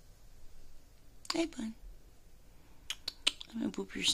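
A hand softly strokes a cat's fur.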